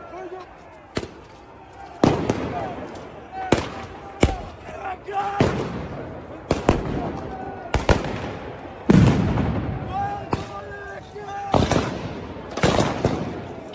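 Loud bangs of explosions echo between buildings outdoors.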